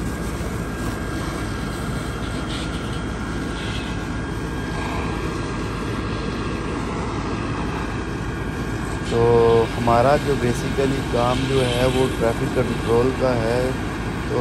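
A fire engine's pump engine hums steadily.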